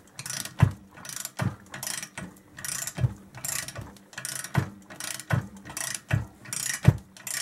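A power tool hones a metal cylinder with rhythmic scraping strokes.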